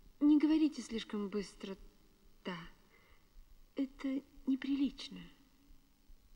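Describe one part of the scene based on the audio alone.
A woman speaks calmly and clearly nearby.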